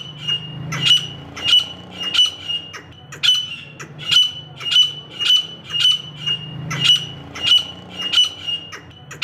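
A partridge calls out loudly in sharp, repeated, high chirps about every half second to second.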